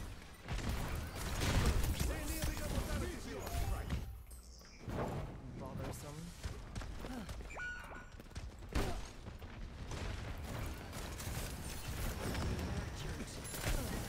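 Gunfire and game effects crackle and thud.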